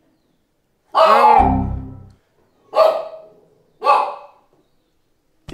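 A young man calls out loudly in short bursts.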